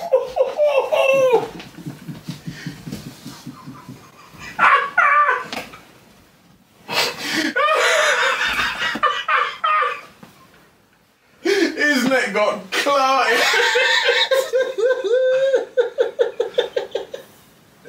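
A man laughs heartily close to a microphone.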